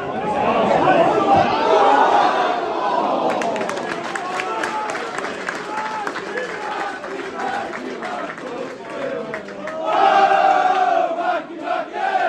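A large crowd of men chants and sings loudly outdoors.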